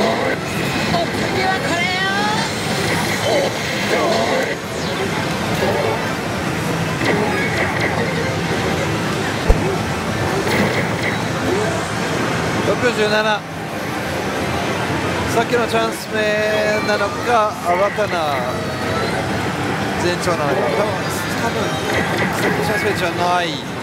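A slot machine plays loud music and electronic sound effects.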